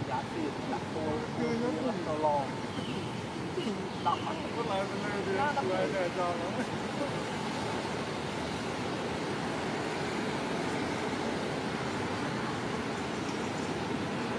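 Leaves and branches rustle as a monkey climbs.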